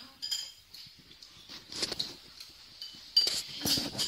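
A metal spoon scrapes and clinks against a ceramic bowl.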